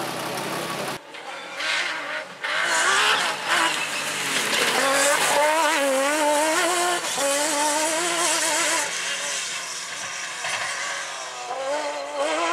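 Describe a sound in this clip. A rally car engine roars and revs hard as the car speeds past outdoors.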